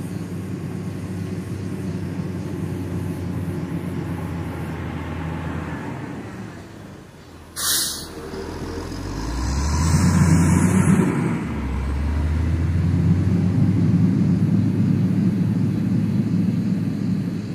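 A heavy diesel engine rumbles close by, growing louder toward the end.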